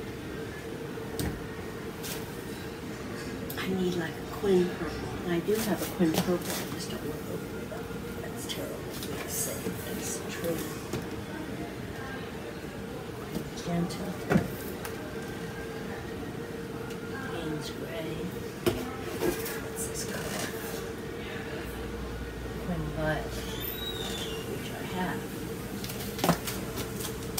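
Someone handles things close by with soft knocks and rustles.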